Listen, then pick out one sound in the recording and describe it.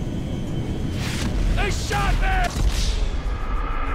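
Gunfire and a loud explosion boom.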